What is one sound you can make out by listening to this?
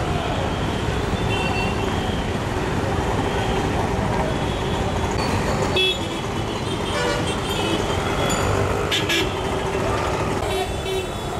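Traffic rumbles steadily along a busy street.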